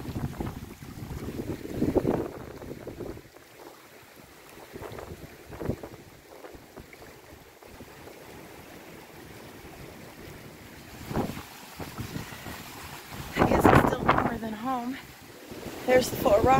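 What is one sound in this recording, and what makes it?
Wind gusts roughly across the outdoors.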